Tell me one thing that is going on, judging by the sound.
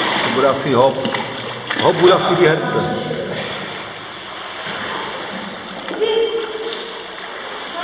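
A young man speaks close by in an echoing room.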